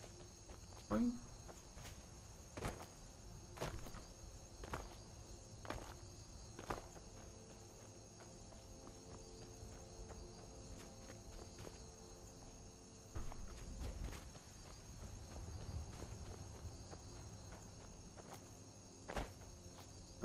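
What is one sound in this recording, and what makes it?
Footsteps crunch on rocky ground at a steady pace.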